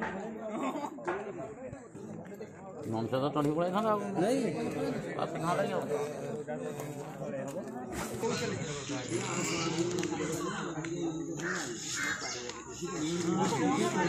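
A crowd of men and boys murmurs and talks outdoors nearby.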